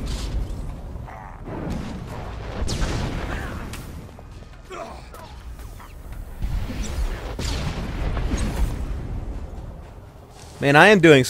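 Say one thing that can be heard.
A lightsaber hums and swings.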